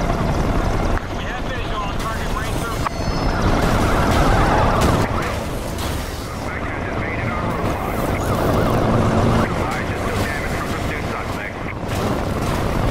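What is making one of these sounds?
Police sirens wail.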